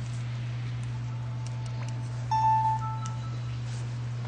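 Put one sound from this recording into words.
A handheld game console plays a short start-up chime.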